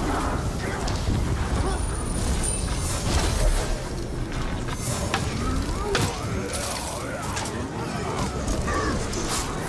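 Swords clash and strike in a fierce battle.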